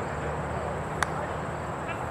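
A cricket bat strikes a ball in the distance.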